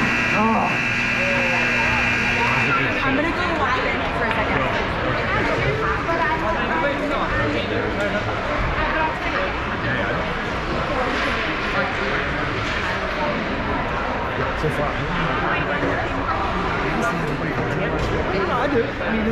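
Hockey sticks tap and clack on the ice.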